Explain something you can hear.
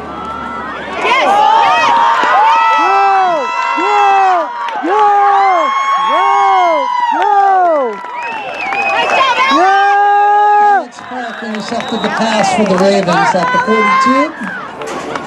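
A crowd cheers and shouts loudly in rising and falling bursts.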